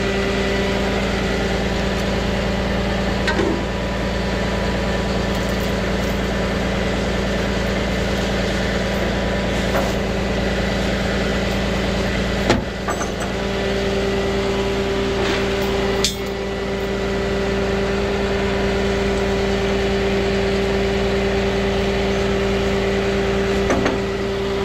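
A truck engine idles with a steady low hum.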